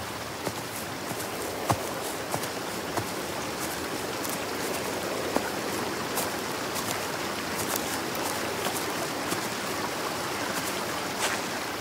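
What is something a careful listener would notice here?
A breeze rustles through leafy trees outdoors.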